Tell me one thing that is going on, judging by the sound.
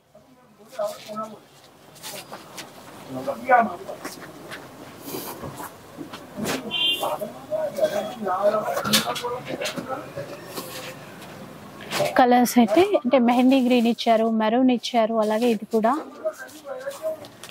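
Fabric rustles and swishes as cloth is handled and laid down.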